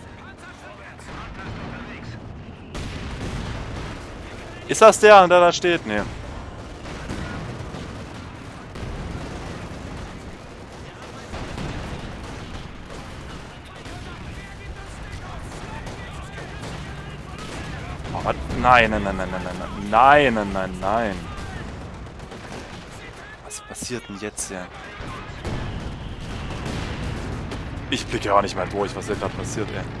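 Explosions boom in a battle.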